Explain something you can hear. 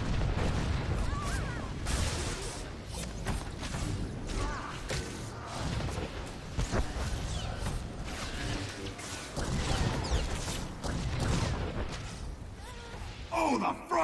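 Laser swords hum and clash in a fight.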